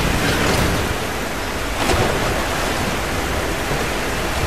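Water churns and swirls as someone swims.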